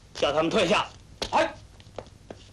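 A man speaks firmly, giving an order.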